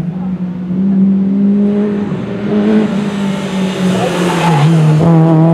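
A small hatchback's engine revs hard as the car races past.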